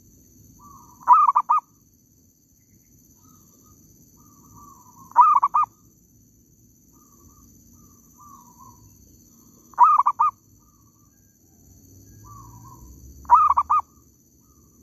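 A bird calls loudly in short, repeated bursts of chirps.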